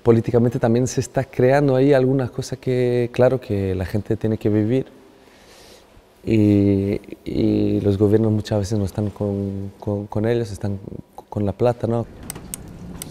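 A young man speaks calmly and with animation, close to a microphone.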